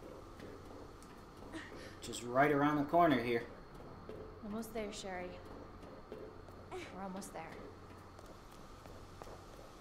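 Footsteps thud on a metal walkway.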